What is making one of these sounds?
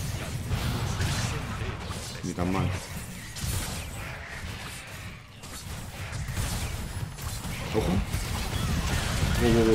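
Video game spells whoosh and crackle.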